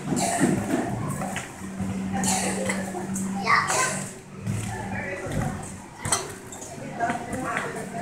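A trampoline mat thumps and creaks with repeated bouncing.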